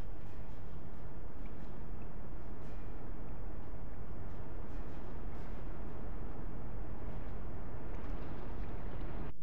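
Footsteps tap lightly on metal.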